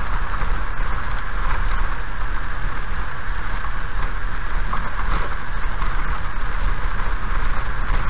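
Raindrops patter on a windscreen.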